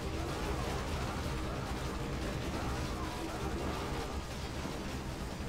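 Game battle sounds clash and rumble.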